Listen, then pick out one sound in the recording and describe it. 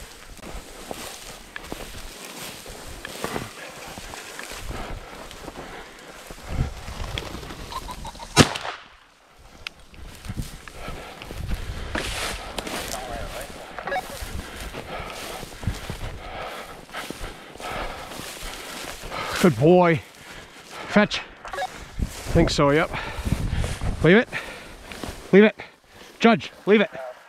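Dry grass rustles and brushes past as someone walks through it.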